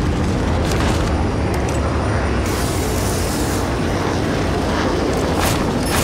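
A car engine roars steadily at speed.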